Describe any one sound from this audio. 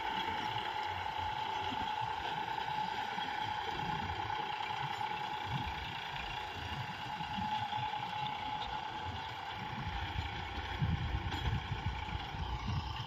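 A tractor engine hums steadily in the distance.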